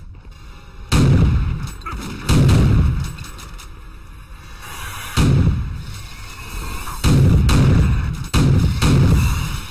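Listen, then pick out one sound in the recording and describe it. A shotgun fires loud, booming blasts a few seconds apart.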